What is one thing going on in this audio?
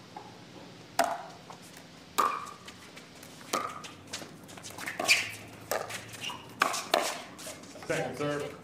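Paddles strike a plastic ball in a quick rally.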